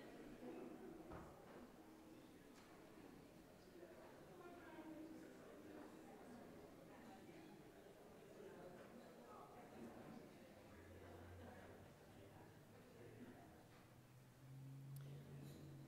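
Several older men and women chat quietly in an echoing hall.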